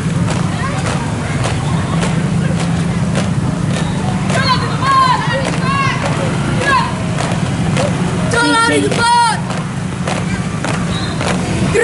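Many children march in step, their footsteps tapping on the road.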